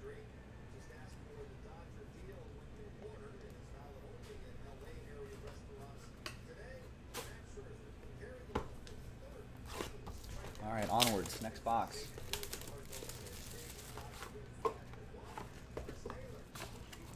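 Card packaging crinkles and taps as hands handle it.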